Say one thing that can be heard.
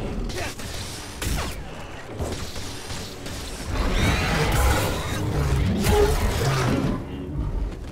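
A large beast roars and growls.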